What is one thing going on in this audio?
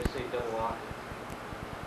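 A man speaks briefly and calmly.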